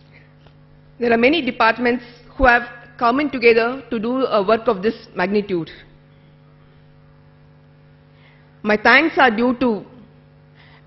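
A woman speaks clearly into a microphone, heard through a loudspeaker.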